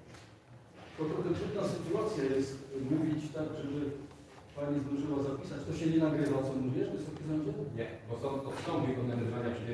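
A man speaks steadily into a microphone in an echoing hall.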